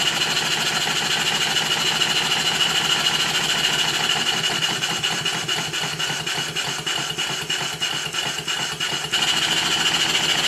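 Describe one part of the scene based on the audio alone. A small steam engine runs fast with a rapid, steady whirring chuff.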